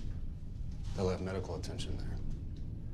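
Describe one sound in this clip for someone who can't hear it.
An older man speaks in a low, firm voice.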